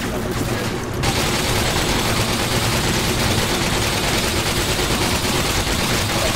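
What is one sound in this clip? Rapid gunfire rattles without pause.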